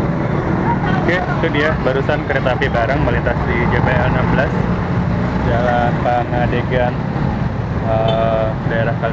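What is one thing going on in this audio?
A man talks close by.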